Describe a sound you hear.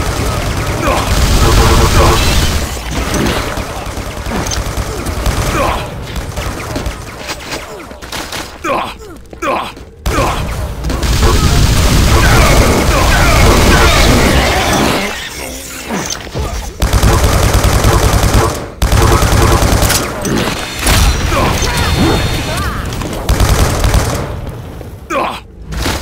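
Energy guns fire in rapid bursts.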